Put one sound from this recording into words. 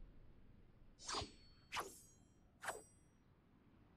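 Gunshots blast three times in quick succession.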